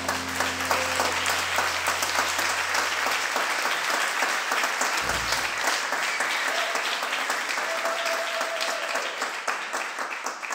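A woman speaks calmly through a loudspeaker in a large hall.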